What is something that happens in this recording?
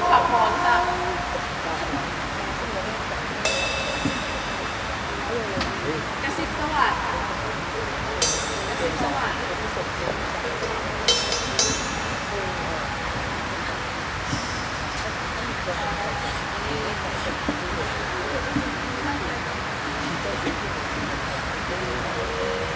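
Young women talk and laugh nearby outdoors.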